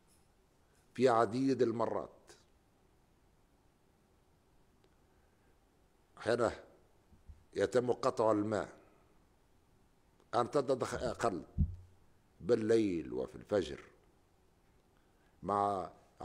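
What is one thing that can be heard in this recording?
An elderly man speaks slowly and formally into a microphone, with long pauses.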